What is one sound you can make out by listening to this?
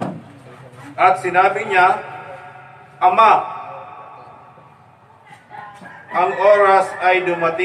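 A man speaks loudly and with emphasis through a microphone in an echoing room.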